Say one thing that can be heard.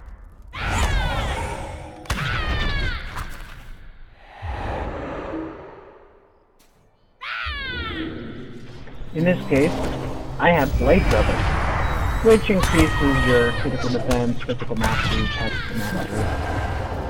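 Magic spells whoosh and chime in a game.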